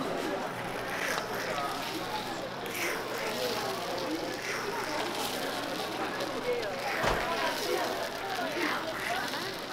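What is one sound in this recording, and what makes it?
A metal pick scrapes and taps against a cake mould.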